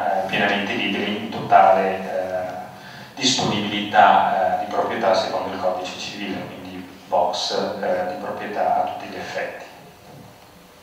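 A man speaks with animation into a microphone, in a room with a slight echo.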